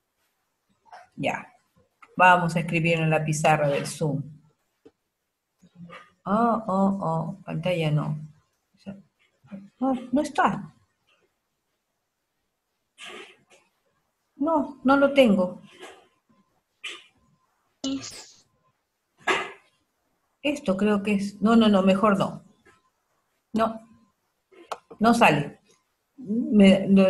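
A woman speaks calmly over an online call, in short phrases.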